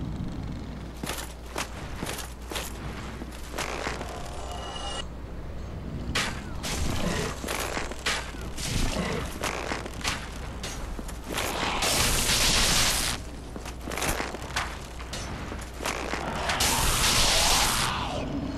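Metal weapons clash and strike with sharp hits.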